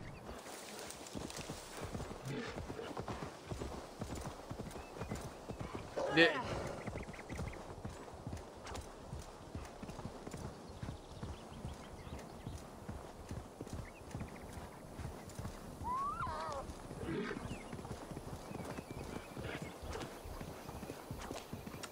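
Hooves gallop steadily on soft ground.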